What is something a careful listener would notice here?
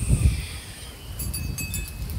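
Torn flags flap and snap in the wind.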